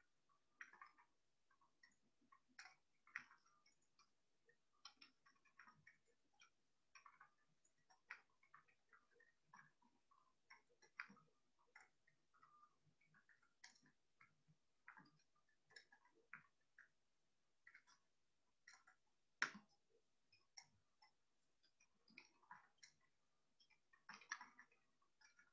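Keys on a keyboard click softly and irregularly as someone types.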